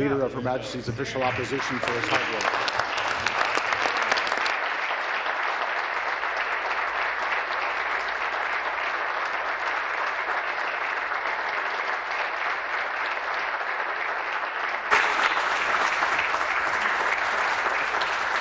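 A crowd applauds loudly in a large hall.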